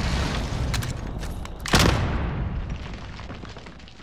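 A gun is reloaded with sharp metallic clicks.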